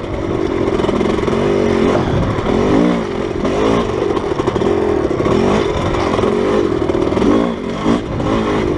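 Tyres crunch over a rough dirt track.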